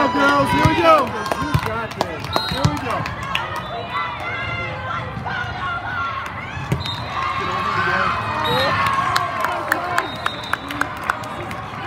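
A volleyball smacks off hands as players hit it.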